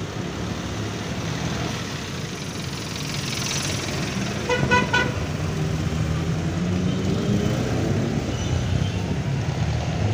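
Motorcycles pass by with buzzing engines.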